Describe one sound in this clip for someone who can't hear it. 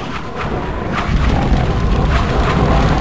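Heavy explosions rumble loudly.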